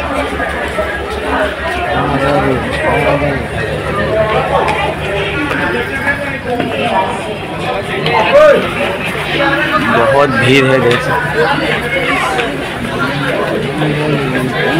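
A crowd of men and women talk nearby, all at once.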